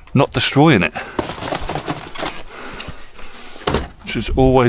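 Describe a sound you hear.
Objects rustle and clatter as hands rummage through a pile of things.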